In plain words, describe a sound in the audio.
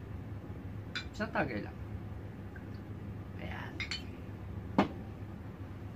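Glass clinks.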